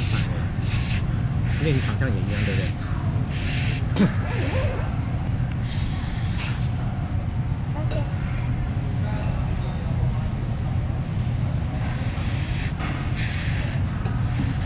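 A young girl slurps noodles.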